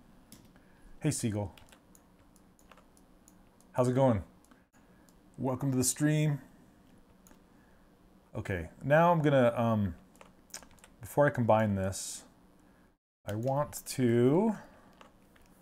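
A middle-aged man talks calmly and casually into a close microphone, in short bursts with pauses.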